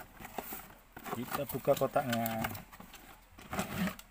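A cardboard box lid is pulled open with scraping and rustling.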